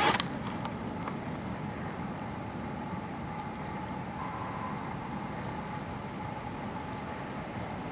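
Water splashes as geese bathe close by.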